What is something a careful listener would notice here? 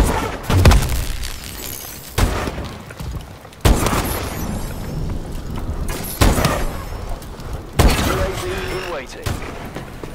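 Rifle shots crack in single loud bursts.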